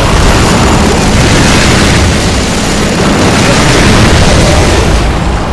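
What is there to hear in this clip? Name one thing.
Energy guns fire in loud bursts.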